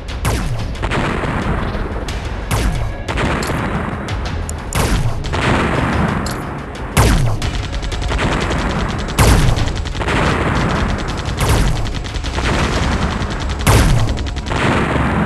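Explosions boom with deep thuds.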